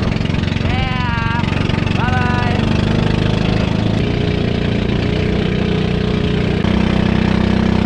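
A boat engine chugs loudly and steadily.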